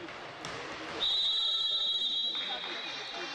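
A referee blows a long, shrill whistle in an echoing hall.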